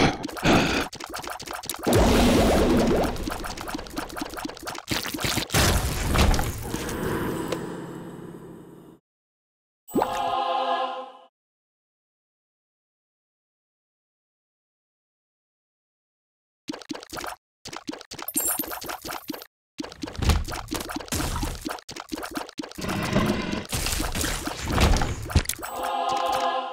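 Rapid popping shots and wet splats come from a video game in dense bursts.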